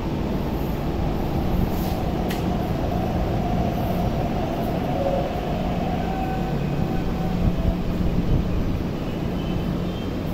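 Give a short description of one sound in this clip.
A train rolls in and slows to a stop with a humming whine.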